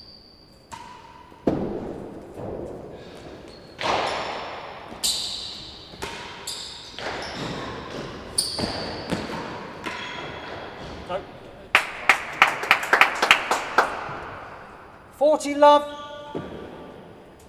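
A ball thuds off the walls and floor of a large echoing hall.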